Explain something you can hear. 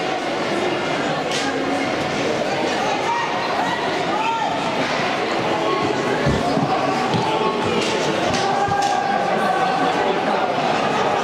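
Ice skates scrape and carve on ice.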